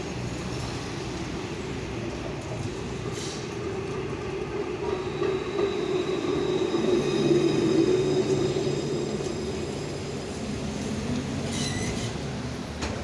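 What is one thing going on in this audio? A tram rumbles in along the tracks and slows to a stop.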